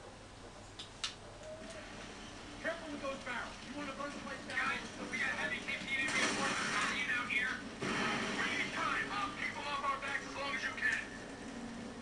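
Rapid gunfire rattles and crackles.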